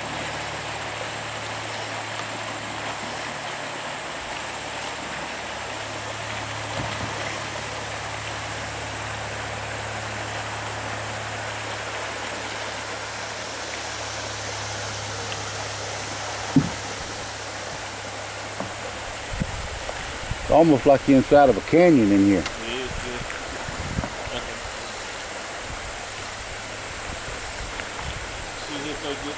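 Shallow river water ripples and babbles over rocks.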